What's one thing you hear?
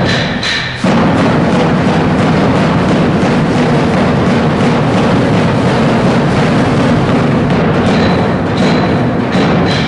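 A large drum booms in a steady beat, echoing in a hall.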